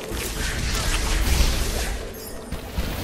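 A sparkling magical burst crackles and whooshes.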